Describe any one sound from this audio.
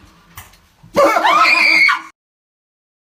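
A young woman shrieks loudly close by.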